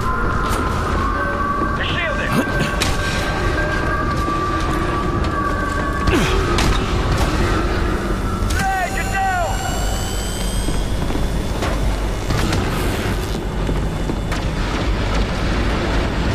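Footsteps thud on a hard floor as a figure runs.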